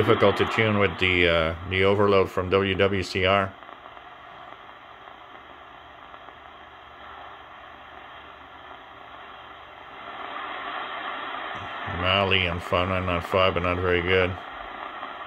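A man's voice speaks through a small radio loudspeaker.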